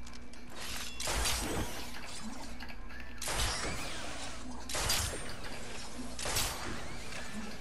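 A grappling line zips and whooshes in loud bursts.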